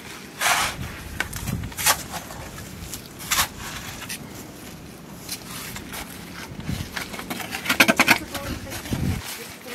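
A shovel scrapes and digs into wet mud.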